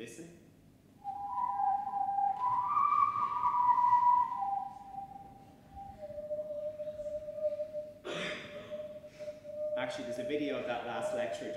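A whirled plastic tube hums with shifting whistling tones.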